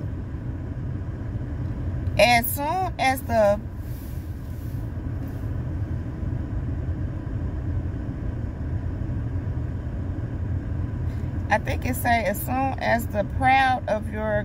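A car engine rumbles low and steadily.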